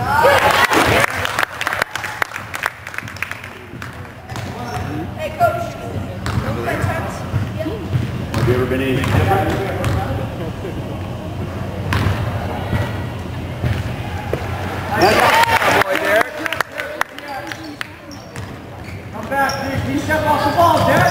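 Young people call out and talk across an echoing gym.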